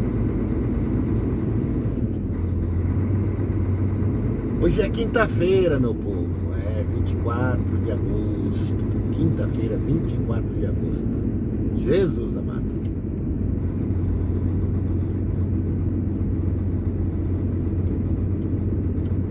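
A vehicle's engine hums low and steady from inside the cab.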